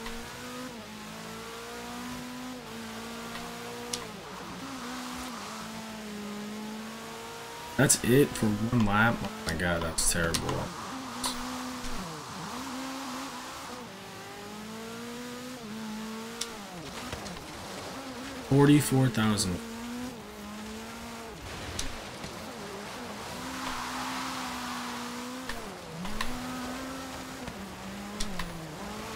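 A car engine hums and revs steadily, shifting pitch up and down.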